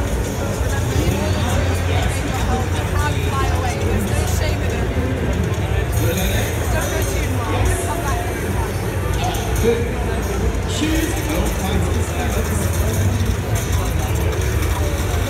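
Video game explosions and effects play loudly through loudspeakers.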